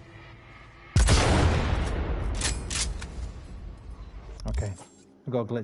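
A gunshot booms loudly and rumbles away.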